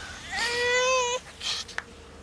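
A baby cries.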